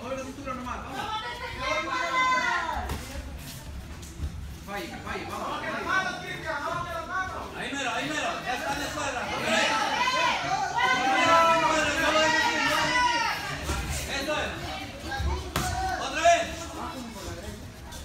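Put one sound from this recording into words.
Several men nearby shout and call out with excitement in an echoing hall.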